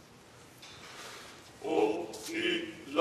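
A choir begins to sing.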